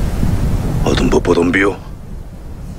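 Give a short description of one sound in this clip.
A man asks a tense question in a low voice, close by.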